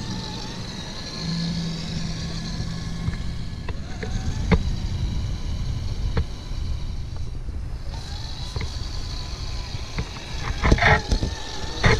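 Plastic tyres crunch over packed snow.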